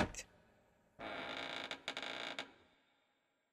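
A heavy door creaks open.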